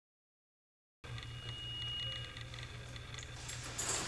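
A young woman talks on a phone.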